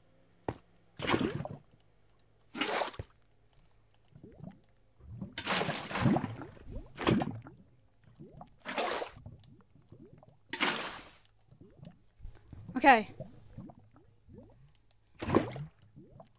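A bucket scoops and pours liquid with short splashing whooshes, again and again.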